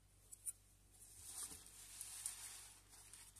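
A model motorcycle rustles on paper as it is set down.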